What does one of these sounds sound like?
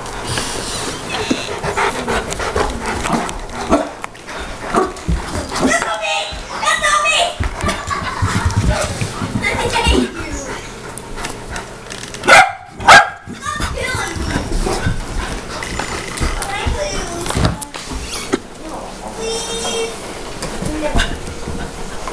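A large dog scuffles and pads across carpet.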